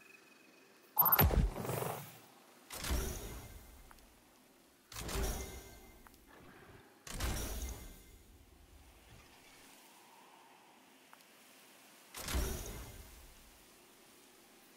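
A game menu plays a bright, swelling upgrade sound again and again.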